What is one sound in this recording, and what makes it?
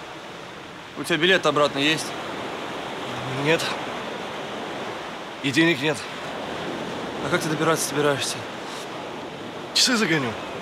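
Another young man answers casually close by.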